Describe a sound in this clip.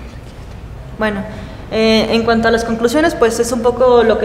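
A young woman speaks up close into a microphone with animation.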